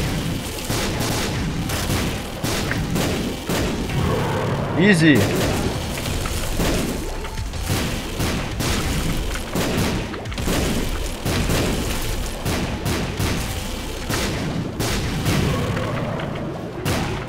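Game sound effects pop and splatter rapidly.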